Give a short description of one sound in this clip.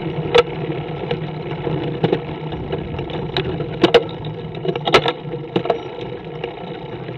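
Tyres roll with a low hum on smooth asphalt.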